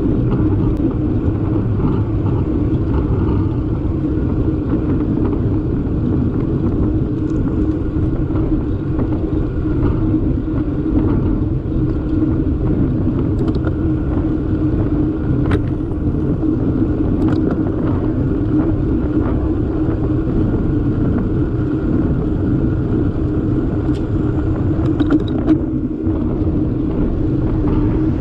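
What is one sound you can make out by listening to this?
Wind rushes loudly and steadily past, as if riding fast outdoors.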